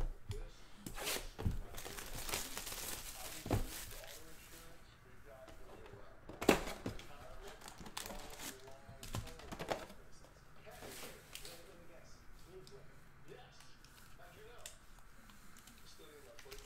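Cardboard box flaps and foil packs rustle and crinkle in hands.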